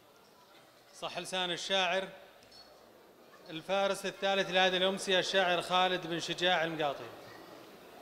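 A man recites loudly into a microphone over loudspeakers in a large echoing hall.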